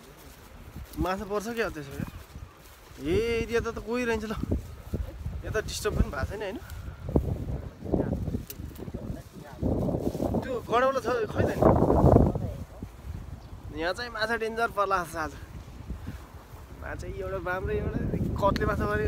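A young man talks close to the microphone with animation.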